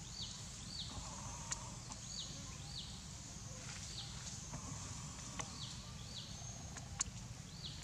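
A small monkey patters across dry leaves.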